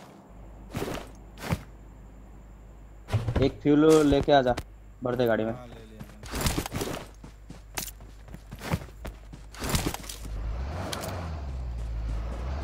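Footsteps run over grass.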